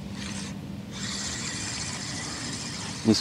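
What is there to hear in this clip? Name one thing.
A fishing reel whirs softly as a line is wound in.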